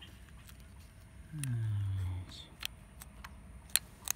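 A small metal linkage clicks as it is moved by hand.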